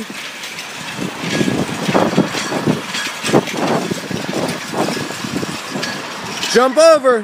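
A metal sled scrapes and grinds along concrete.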